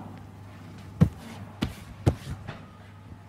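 Footsteps tap on a tiled floor in an echoing room.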